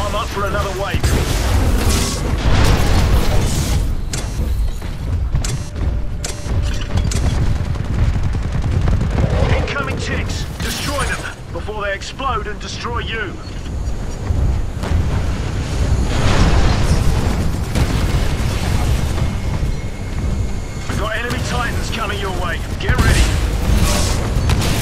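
A large explosion booms close by.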